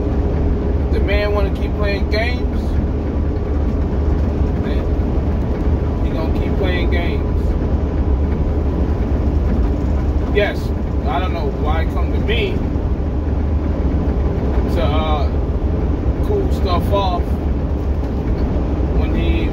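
A man sings loudly close by, in short bursts with pauses between.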